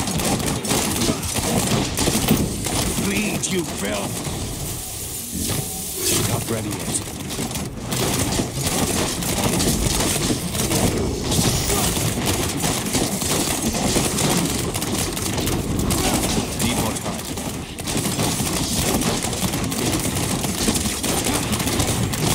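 Game spells crackle and explode in rapid bursts.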